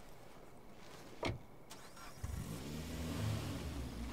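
A car door opens and shuts with a thud.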